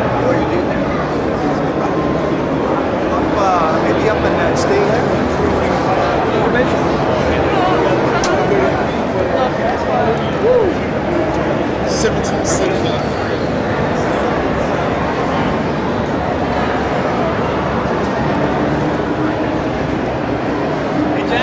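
A crowd of people chatters in a large, echoing hall.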